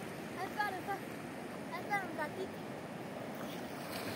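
A dog splashes as it swims through the water.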